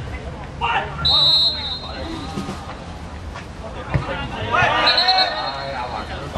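A referee's whistle blows two sharp blasts.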